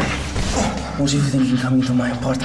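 A young man speaks tensely up close.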